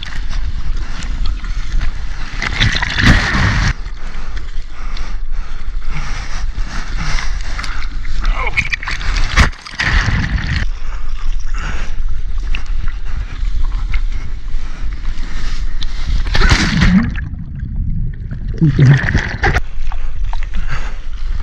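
Water splashes and sloshes loudly close by.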